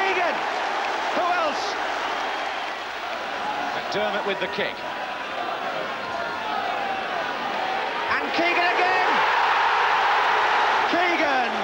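A large crowd roars in a stadium, swelling into loud cheering.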